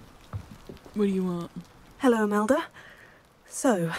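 A young woman speaks in a friendly, lively voice.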